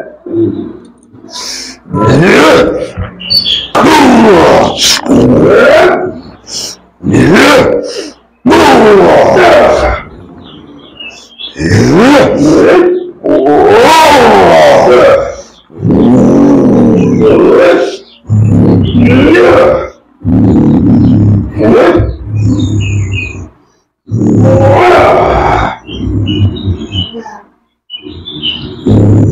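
A man shouts and wails loudly in long bursts, close by.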